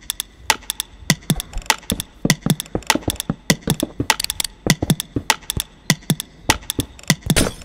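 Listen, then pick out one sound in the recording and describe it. Blocks knock softly as they are placed one after another.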